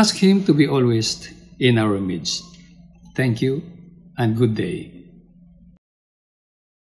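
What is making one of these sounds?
An elderly man speaks warmly through a microphone, as if on an online call.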